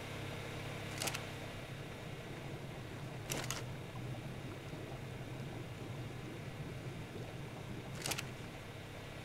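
Short interface clicks sound as a game menu opens and closes.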